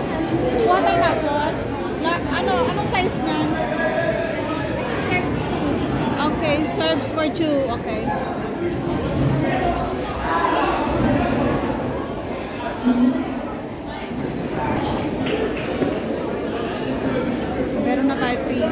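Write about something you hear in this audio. Several adults talk and chatter around nearby in a busy, echoing room.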